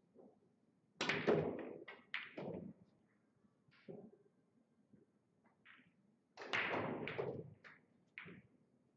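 Billiard balls clack together and roll across a table.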